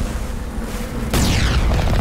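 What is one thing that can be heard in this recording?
An explosion booms in a game.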